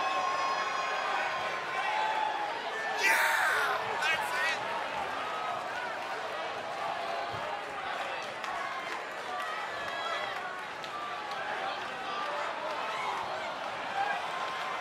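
A large crowd cheers and roars in a big echoing arena.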